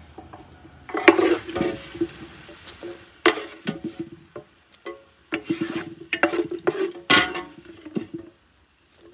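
A food mixture is stirred in a glass bowl.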